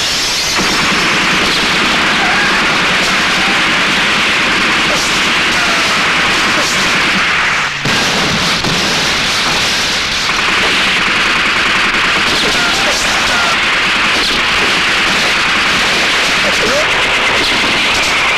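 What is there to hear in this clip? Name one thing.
Automatic guns fire in rapid bursts.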